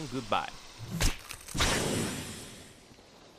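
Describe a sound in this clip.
A loud explosion bursts.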